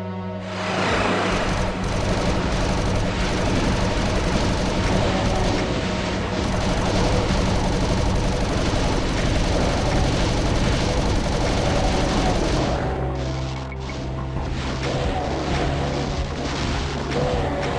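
Monsters growl and roar.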